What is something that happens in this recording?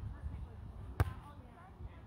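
A volleyball is hit with a sharp slap.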